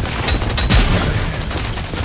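Gunfire rattles in rapid bursts close by.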